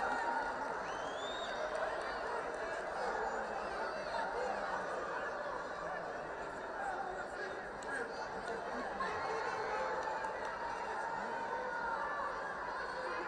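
A large crowd murmurs and cheers throughout a big echoing arena.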